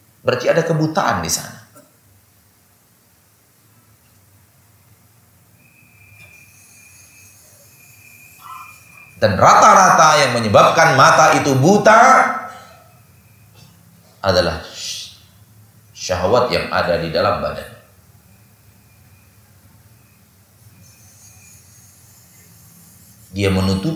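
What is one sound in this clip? A man speaks calmly into a microphone, in bursts with pauses.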